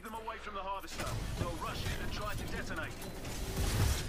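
An explosion booms with a burst of flames.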